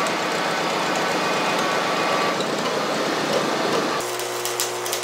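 A tractor engine runs nearby with a loud, rough idle.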